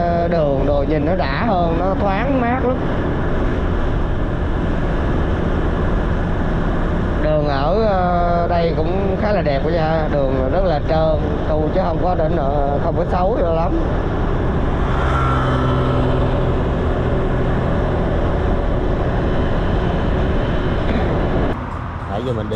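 A scooter engine hums steadily.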